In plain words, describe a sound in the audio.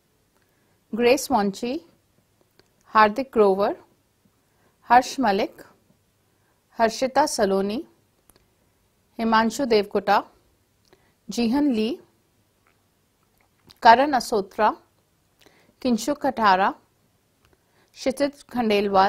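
A woman reads out names clearly through a microphone, with short pauses between them.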